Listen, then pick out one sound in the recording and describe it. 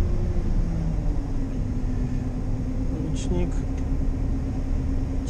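Corn stalks rustle and crunch as a harvester's header cuts through them.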